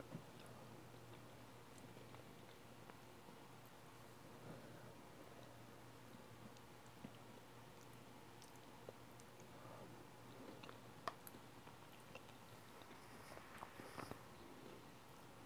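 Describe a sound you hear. A young woman chews food with soft, wet mouth sounds close to a microphone.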